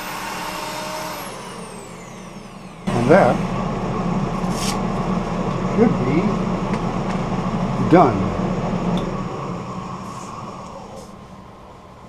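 A wood lathe hums as it spins, then winds down.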